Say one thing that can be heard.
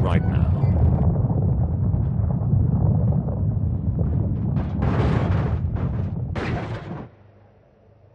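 Heavy metal containers topple and crash onto cars with loud scraping and banging.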